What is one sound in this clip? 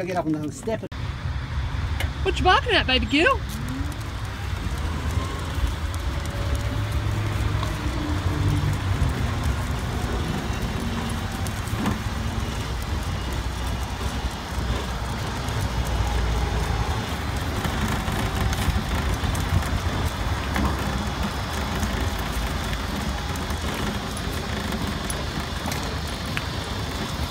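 Footsteps patter on a paved path close by.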